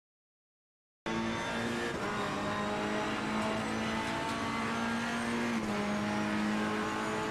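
A race car engine roars at high revs.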